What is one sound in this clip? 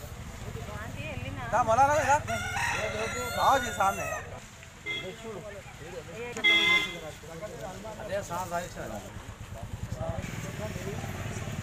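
Several men talk and call out nearby outdoors.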